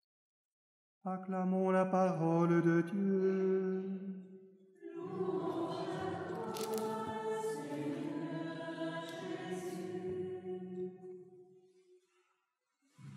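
An older man chants through a microphone, his voice ringing in a large echoing hall.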